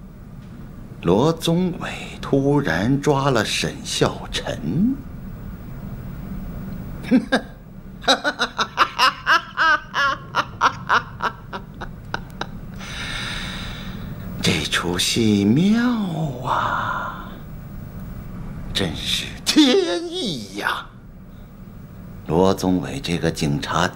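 An elderly man speaks with animation close by.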